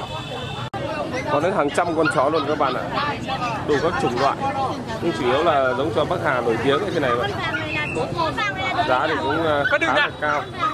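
Puppies whimper and yelp close by.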